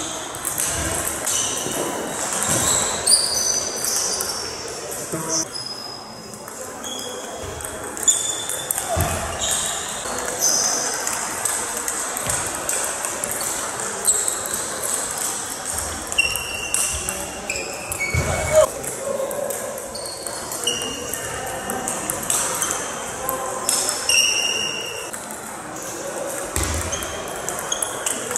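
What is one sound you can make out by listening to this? Table tennis balls click on paddles and tables in an echoing hall.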